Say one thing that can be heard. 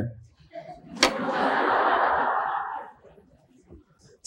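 An audience laughs together.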